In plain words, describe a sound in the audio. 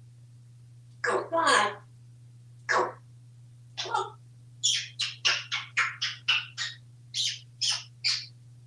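A parrot squawks and chatters in short loud bursts, faster toward the end.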